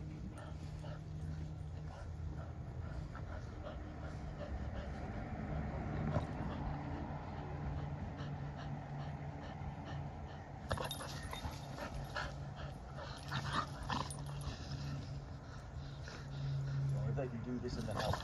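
Two dogs growl playfully as they wrestle.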